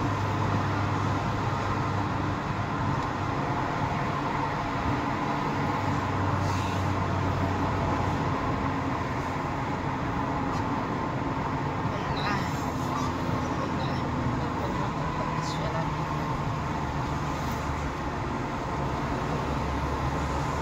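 A car engine idles steadily in slow traffic.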